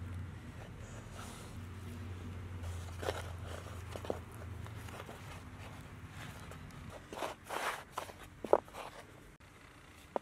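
Dough rustles and scrapes softly through dry flour.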